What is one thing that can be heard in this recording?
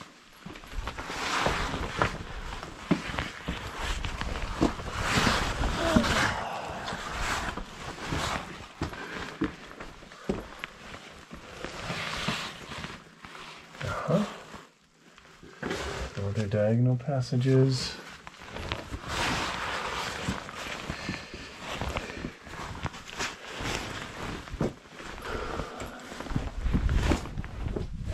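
Loose stones crunch and clatter under a crawling person.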